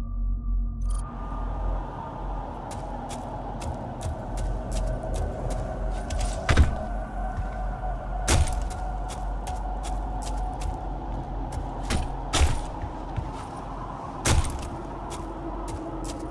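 Heavy footsteps thud and clank at a steady walking pace.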